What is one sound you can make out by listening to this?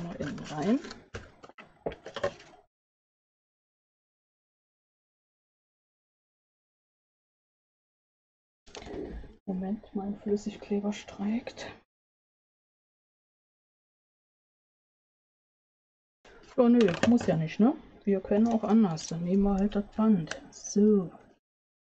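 A middle-aged woman talks calmly into a microphone, in bursts with pauses.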